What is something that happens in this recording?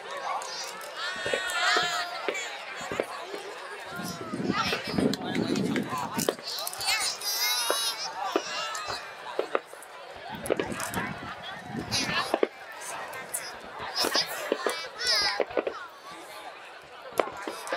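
Fireworks crackle and fizzle in the air.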